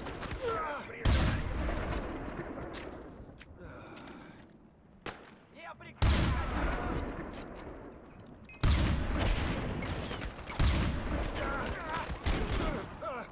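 Loud rifle shots boom and echo away.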